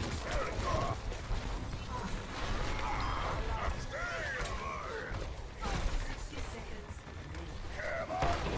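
Heavy weapons fire in rapid bursts.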